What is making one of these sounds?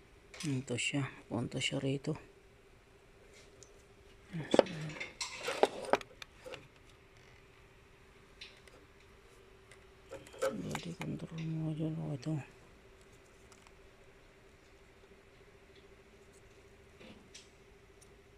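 A plastic wiring connector clicks and rattles in a hand.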